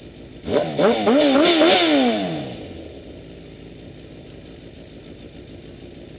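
A dirt bike engine revs hard in bursts, then drops to a low idle.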